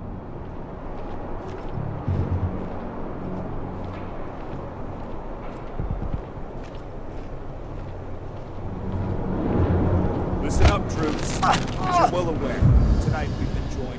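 Footsteps pad softly on a hard floor.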